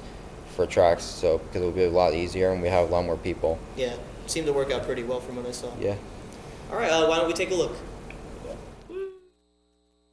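Young men talk and laugh with animation nearby.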